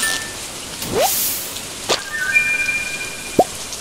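A short bright jingle plays as a fish is landed.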